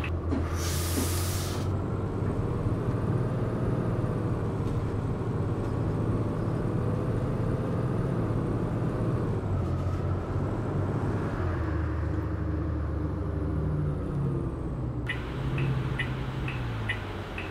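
A diesel articulated city bus drones as it drives along.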